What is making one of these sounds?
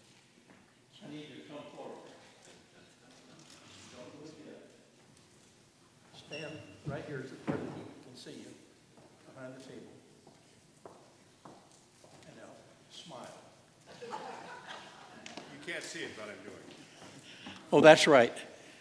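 An elderly man speaks calmly in a large echoing hall, heard through a microphone.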